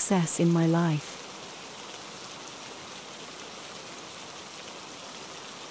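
Steady rain falls and patters.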